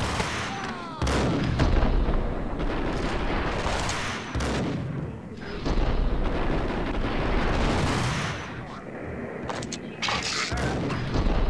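Guns fire in rapid, loud bursts.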